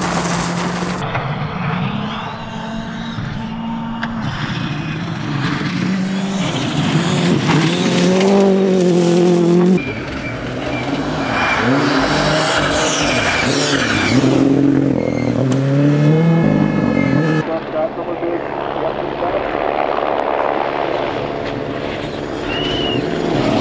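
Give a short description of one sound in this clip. A rally car engine revs and roars as it speeds past.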